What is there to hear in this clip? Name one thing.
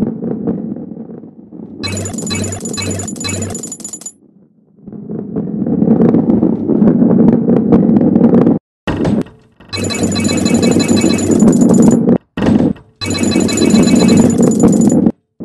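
A ball rolls and rumbles steadily along a smooth track.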